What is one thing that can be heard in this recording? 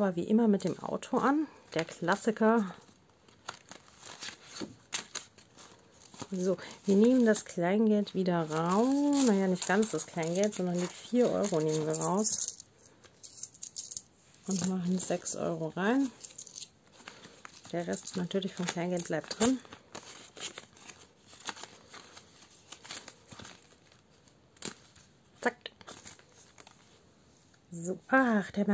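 Plastic sleeves and paper pages rustle as they are turned.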